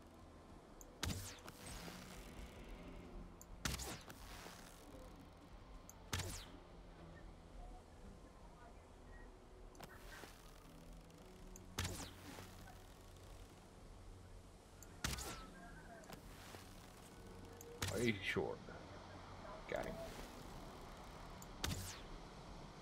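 A bowstring twangs as arrows are shot, again and again.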